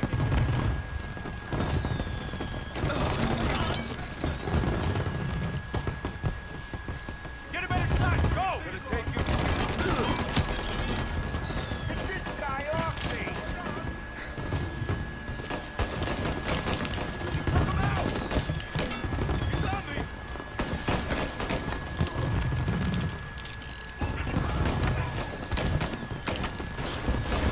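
Gunshots bang out in quick bursts, close by.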